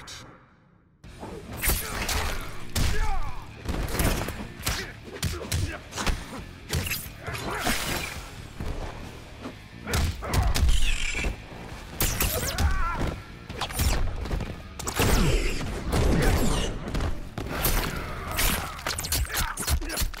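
Punches and kicks land with heavy thuds again and again.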